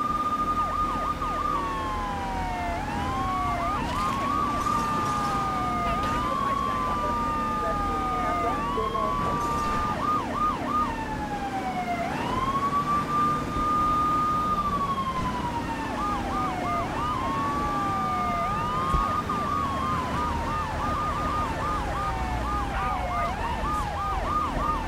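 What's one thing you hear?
Police sirens wail and warble close by.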